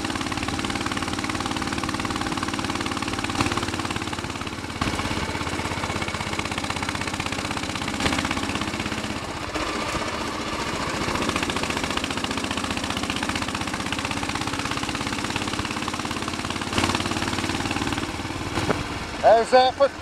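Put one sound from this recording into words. A single-cylinder Royal Enfield Bullet 500 thumps along at low revs.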